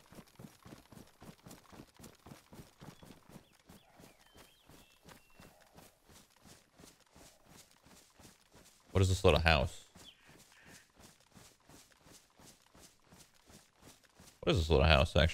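Footsteps rustle quickly and steadily through grass.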